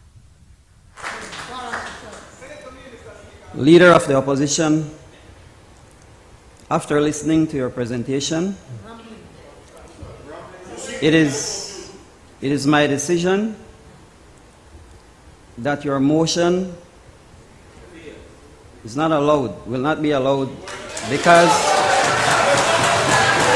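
A middle-aged man speaks calmly into a microphone in an echoing hall, pausing between phrases.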